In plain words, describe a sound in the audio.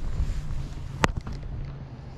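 A fishing reel clicks sharply.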